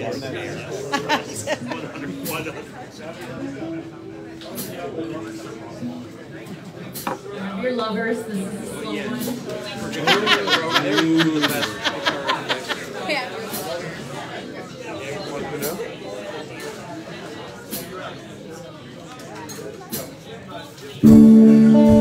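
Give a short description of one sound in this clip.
A live band plays music with electric guitars.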